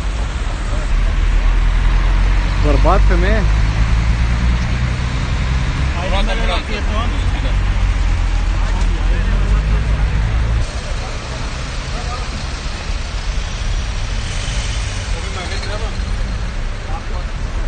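Traffic rumbles steadily on a nearby street.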